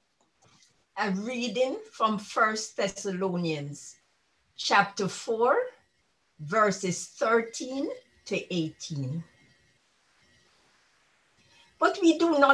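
An elderly woman reads aloud calmly over an online call.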